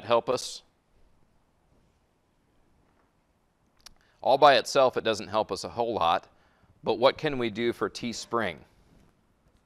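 A man lectures calmly into a microphone, in short bursts with pauses.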